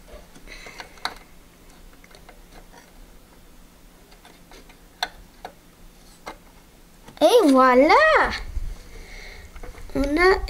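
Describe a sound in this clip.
Cables rustle and click against a metal case.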